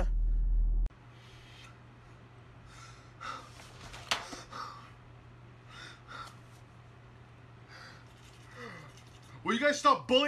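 A man sobs and whimpers quietly.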